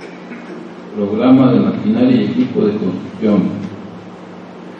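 A man speaks briefly in a quiet room.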